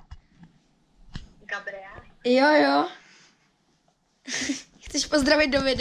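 A young boy laughs close by.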